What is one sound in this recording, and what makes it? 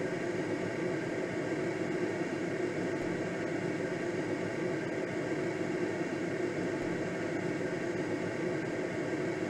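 Wind rushes steadily past a glider's canopy.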